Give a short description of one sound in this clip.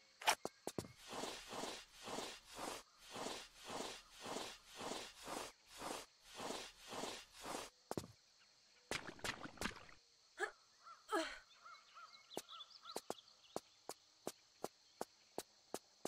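Footsteps patter quickly on stone in an echoing cave.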